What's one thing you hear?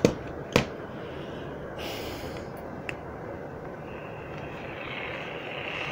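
A small plastic radio knocks against a wooden table as a hand picks it up.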